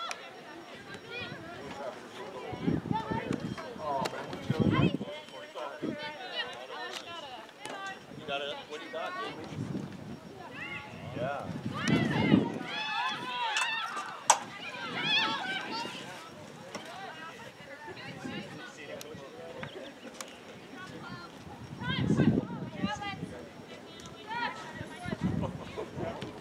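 Young women and spectators shout and call out across an open field outdoors.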